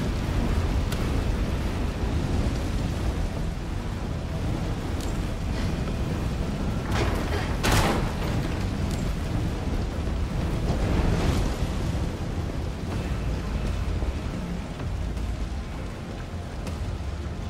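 Footsteps scuff across a gritty floor.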